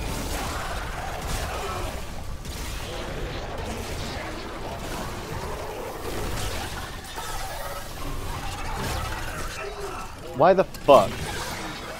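A weapon fires repeatedly in short bursts.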